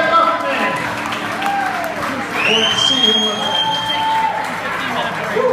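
A live rock band plays loudly with electric guitars and drums.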